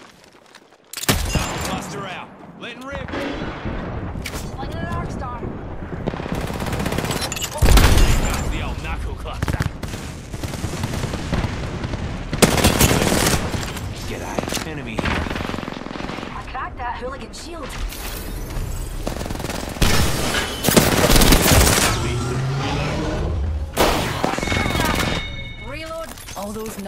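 Rapid gunshots ring out in bursts.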